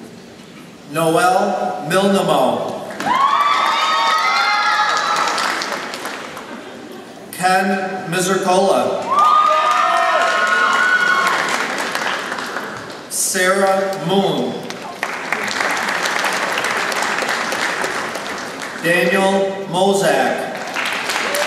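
A man reads out names through a loudspeaker in a large echoing hall.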